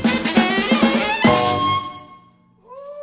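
A jazz band plays a final loud chord that rings out.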